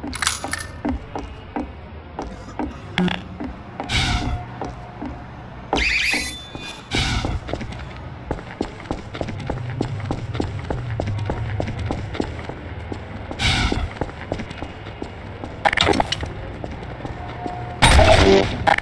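Footsteps tread steadily on wooden stairs and stone paving.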